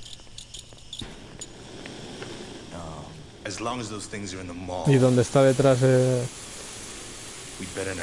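A welding torch hisses against metal.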